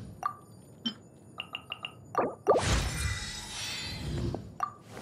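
Short game menu clicks and blips sound.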